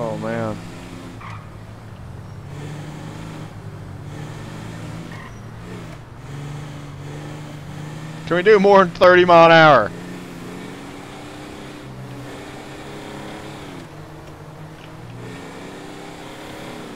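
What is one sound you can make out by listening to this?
A truck engine drones steadily as it drives along a road.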